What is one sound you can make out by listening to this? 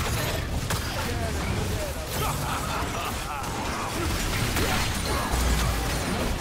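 Video game spell effects crackle and burst during a crowded battle.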